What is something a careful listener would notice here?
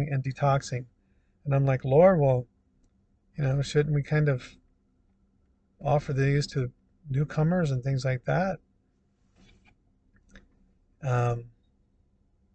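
A middle-aged man speaks calmly and closely, in short phrases with pauses.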